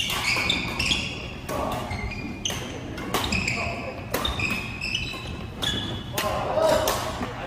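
Shuttlecocks are struck with sharp pops of badminton rackets in an echoing hall.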